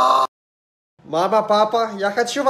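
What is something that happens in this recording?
A young man sings in a high, strained voice.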